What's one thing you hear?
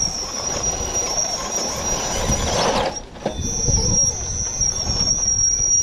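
Plastic tyres scrape and crunch over rock.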